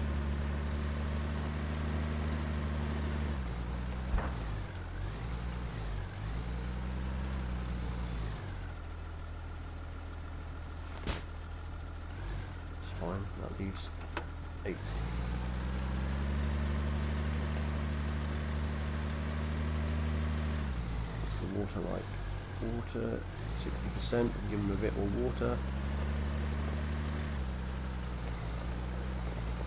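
A tractor engine rumbles and revs up and down.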